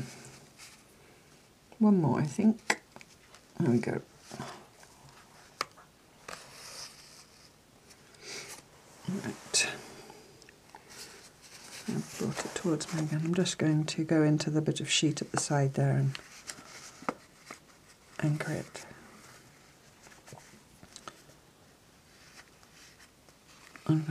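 Fabric rustles softly as hands handle it.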